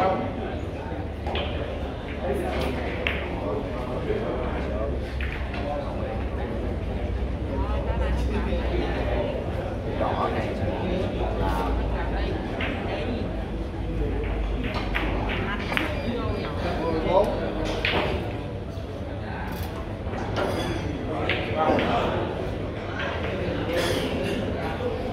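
Men chatter in the background of a busy hall.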